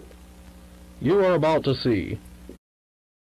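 A man speaks through a crackly old recording.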